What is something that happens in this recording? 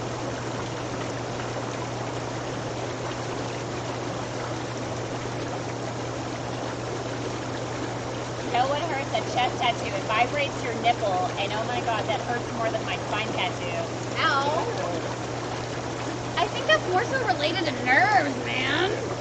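Water bubbles and churns steadily in a hot tub.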